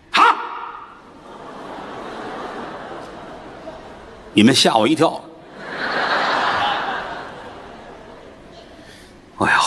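An audience laughs and applauds.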